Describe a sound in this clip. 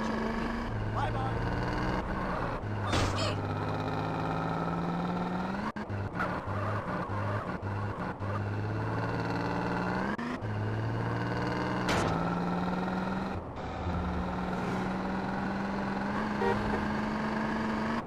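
A muscle car engine accelerates through its gears.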